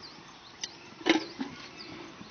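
A heavy metal object thumps onto the ground.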